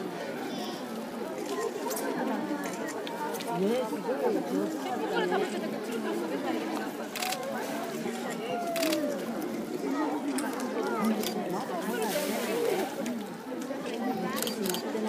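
Water splashes as polar bears swim and play in a pool.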